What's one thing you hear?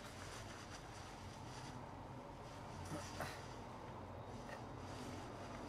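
Jacket fabric rustles close by.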